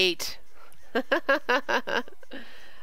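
A young woman laughs in short bursts close to a microphone.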